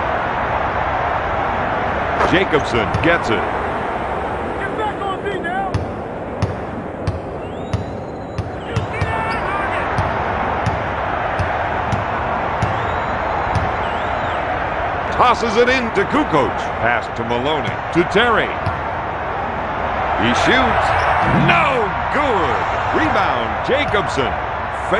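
A large crowd murmurs and cheers steadily in an echoing arena.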